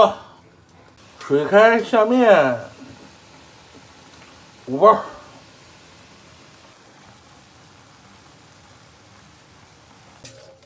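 Water boils and bubbles steadily.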